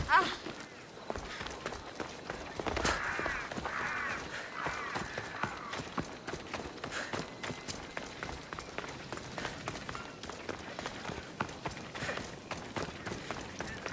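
Footsteps patter quickly on stone.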